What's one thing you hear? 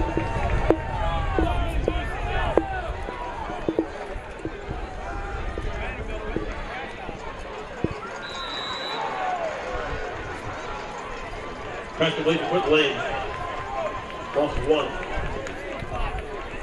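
A crowd cheers and roars in a stadium.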